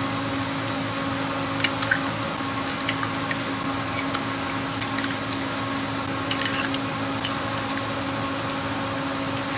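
An egg cracks and its shell crunches.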